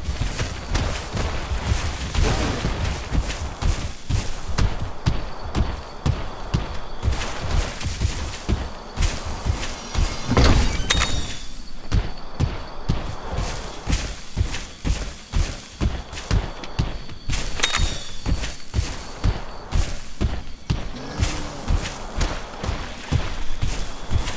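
A creature's feet thud quickly on the ground as it runs.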